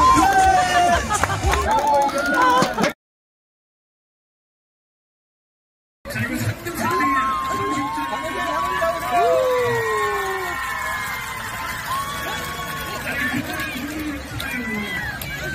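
A crowd of children chatter and shout outdoors.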